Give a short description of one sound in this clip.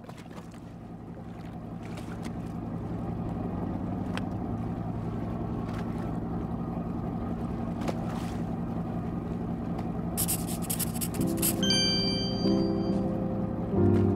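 A boat engine chugs steadily.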